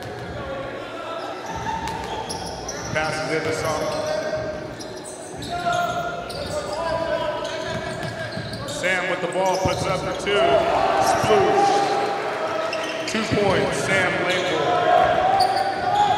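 A crowd murmurs and calls out in an echoing gym.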